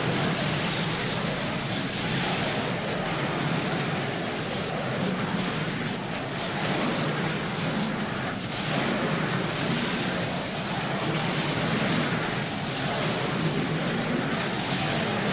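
Magic blasts and combat effects crackle and clash in a game.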